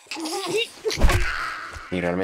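A heavy blow lands with a loud thud.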